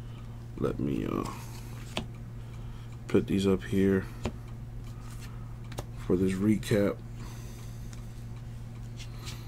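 Trading cards softly rustle and flick against each other.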